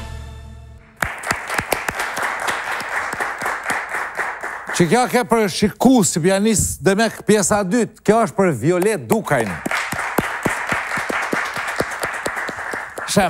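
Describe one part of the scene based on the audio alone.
A crowd applauds with steady clapping.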